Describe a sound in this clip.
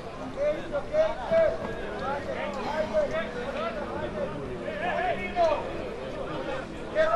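Football players shout to each other from a distance outdoors.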